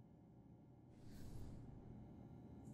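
A soft whoosh swells and fades.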